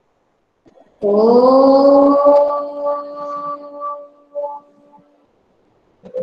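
A woman chants a long, steady hum over an online call.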